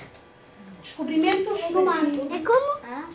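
A young girl speaks nearby in a questioning tone.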